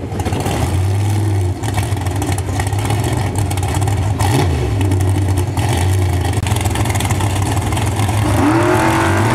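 Drag racing engines idle with a loud, lumpy rumble.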